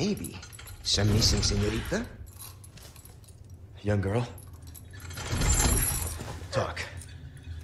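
A man speaks in a low, taunting voice.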